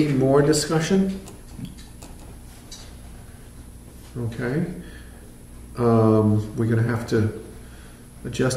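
A middle-aged man speaks calmly in a quiet room, in short bursts.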